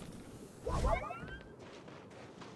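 A muffled blast booms briefly with a whooshing burst.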